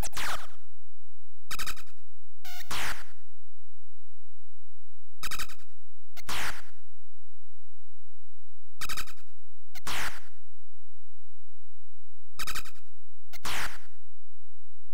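Short electronic game sound effects zap in quick sweeping bursts.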